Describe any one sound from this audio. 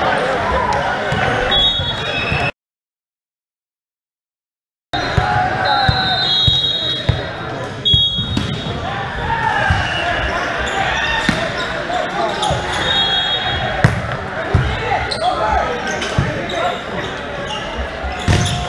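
Players call out to each other in a large echoing hall.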